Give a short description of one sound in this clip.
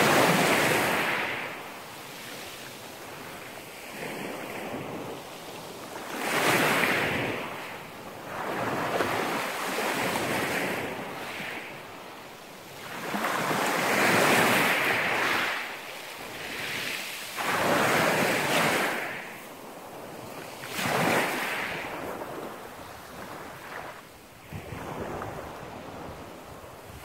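Pebbles rattle and clatter as the water draws back.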